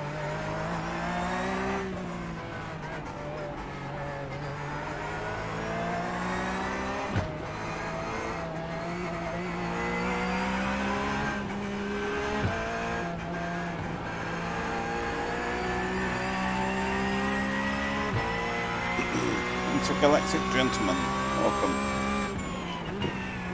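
A racing car engine roars steadily, rising and falling in pitch as the car shifts gears.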